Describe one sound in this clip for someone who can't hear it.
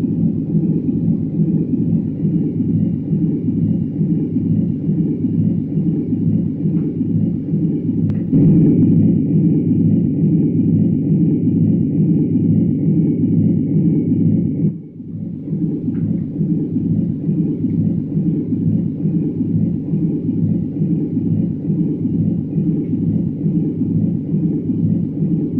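A jet engine roars steadily with a low, pulsing drone.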